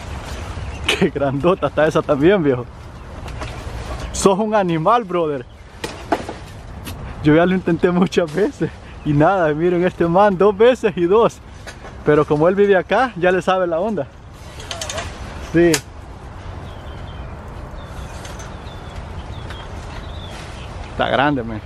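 Leaves and branches rustle as a man climbs a tree.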